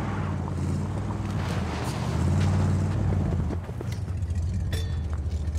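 A car engine rumbles at idle.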